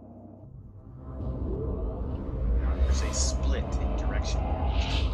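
A deep rumbling whoosh swells as a ship jumps away.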